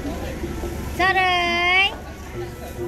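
A small child squeals briefly.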